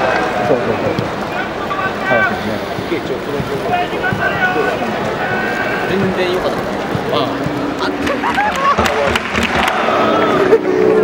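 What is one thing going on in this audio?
A large crowd of football supporters chatters and calls out in open-air stands.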